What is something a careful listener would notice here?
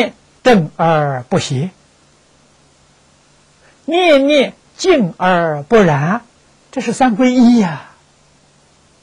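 An elderly man speaks calmly and slowly into a close microphone.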